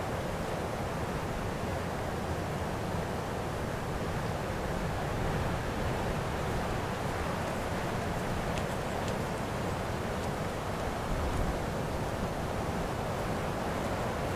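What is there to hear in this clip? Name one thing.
Wind blows steadily across an open field, buffeting the microphone.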